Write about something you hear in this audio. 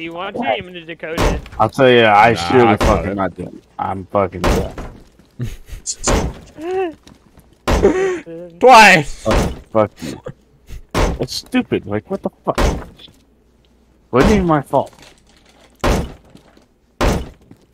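A heavy hammer bangs repeatedly against a wooden door.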